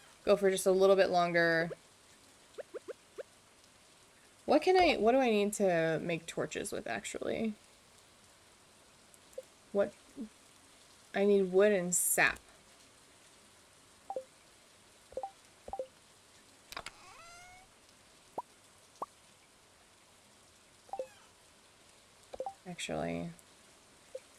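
A young woman talks casually into a close microphone.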